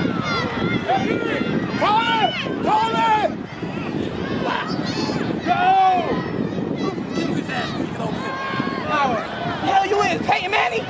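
Young boys shout and call out excitedly outdoors.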